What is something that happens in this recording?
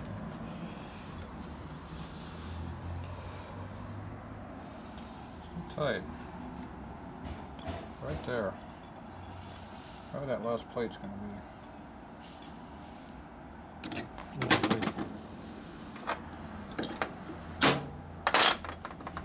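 Metal parts clink and clatter as they are handled.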